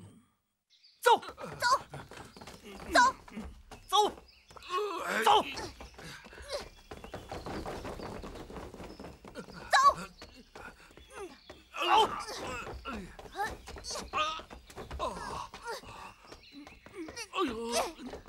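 Blows thud sharply.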